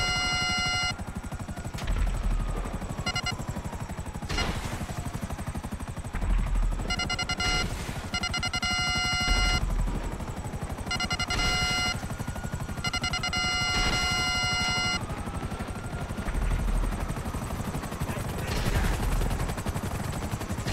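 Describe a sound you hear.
Helicopter rotor blades chop rapidly and steadily.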